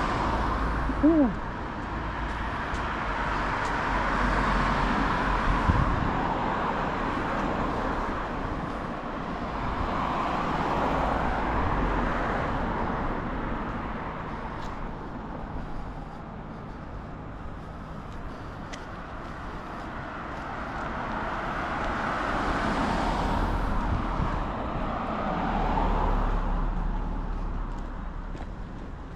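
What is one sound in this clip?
Cars drive past on a nearby street, their noise swelling and fading.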